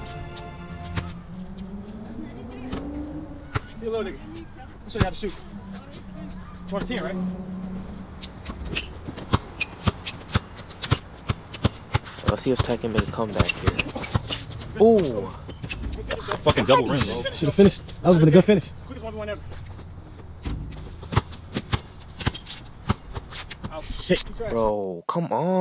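A basketball bounces sharply on a hard outdoor court.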